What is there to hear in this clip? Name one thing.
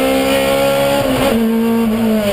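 A car engine dips briefly as a gear changes, then roars on.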